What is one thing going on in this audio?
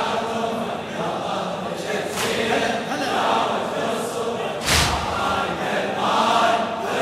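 A middle-aged man chants loudly and with emotion into a microphone, in a large echoing hall.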